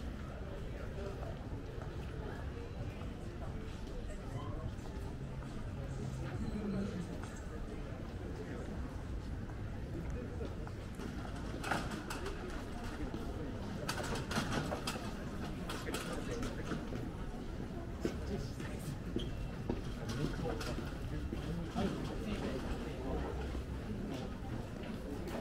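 Footsteps scuff on pavement close by.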